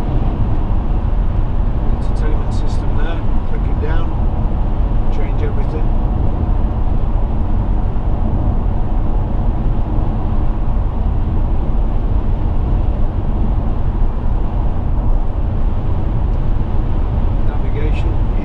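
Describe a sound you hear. A car engine hums steadily at motorway speed.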